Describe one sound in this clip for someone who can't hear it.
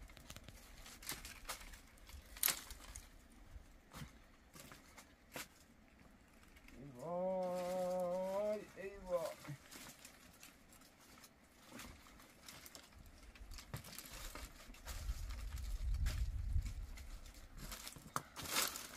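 Dry branches snap and rustle as they are gathered.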